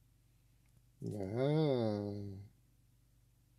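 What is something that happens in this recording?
A man close to a microphone lets out a short, drawn-out exclamation.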